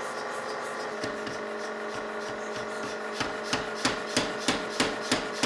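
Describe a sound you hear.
A power hammer pounds hot metal with quick, heavy, ringing blows.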